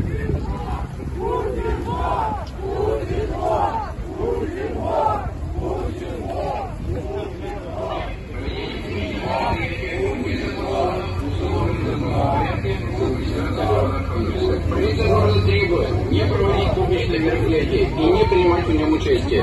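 A large crowd chants in unison outdoors.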